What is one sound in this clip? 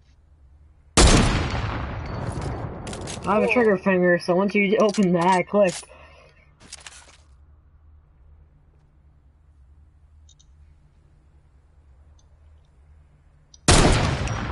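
A rifle fires a loud, echoing shot.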